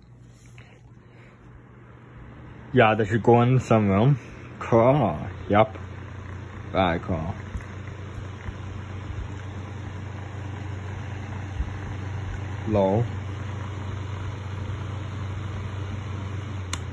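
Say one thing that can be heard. An electric fan starts up and whirs steadily.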